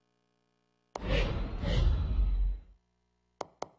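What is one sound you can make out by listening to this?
A loud electronic whoosh sweeps in as the menu changes.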